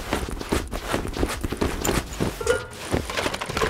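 A soft interface click sounds as an item is moved.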